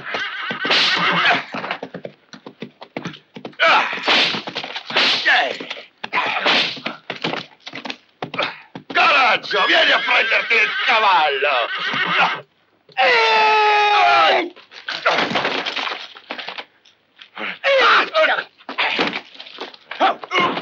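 Bodies thud onto sand in a fight.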